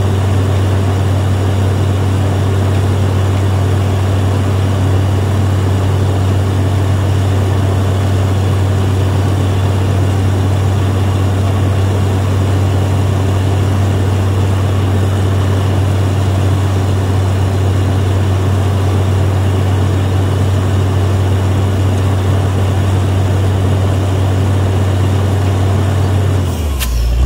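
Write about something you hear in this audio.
A drilling rig's engine roars loudly and steadily, close by.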